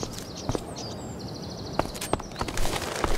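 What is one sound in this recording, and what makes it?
A small bird chirps briefly.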